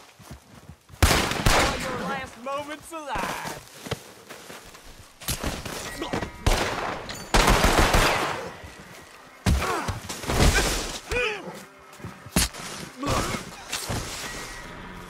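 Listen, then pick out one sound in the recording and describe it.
A man grunts and shouts with effort close by.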